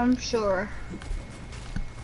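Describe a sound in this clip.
A pickaxe strikes wood with sharp knocks.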